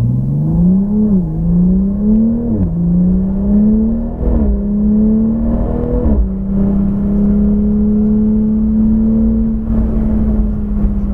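Tyres hum on the track at speed.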